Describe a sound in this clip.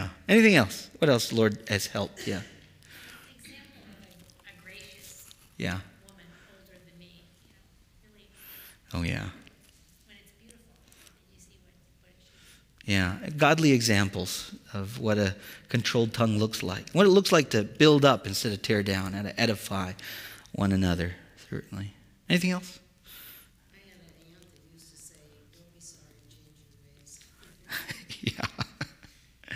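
A man speaks with animation into a microphone in a large echoing room, with long pauses.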